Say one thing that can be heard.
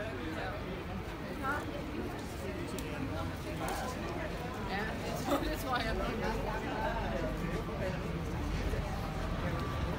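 A crowd of men and women chatter outdoors nearby.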